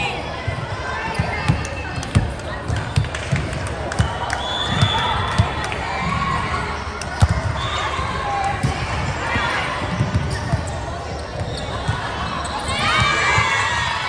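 A volleyball is struck by hands with sharp slaps.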